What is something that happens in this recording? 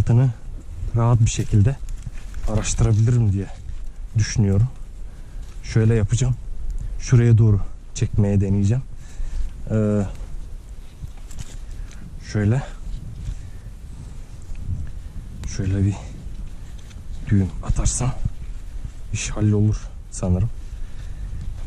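A nylon strap rustles and scrapes against rock.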